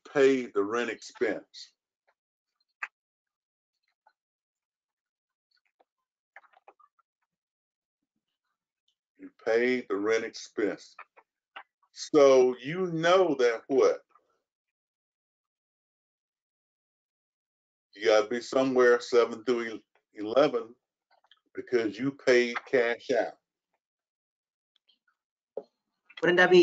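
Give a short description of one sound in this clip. A man speaks calmly in pauses, as if explaining, heard through an online call.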